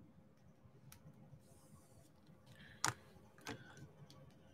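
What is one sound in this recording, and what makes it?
A plastic pen tool taps and clicks lightly as it presses small beads into place.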